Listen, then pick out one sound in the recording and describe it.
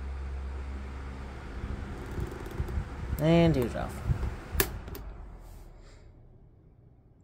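An electric fan whirs steadily, then winds down and fades away.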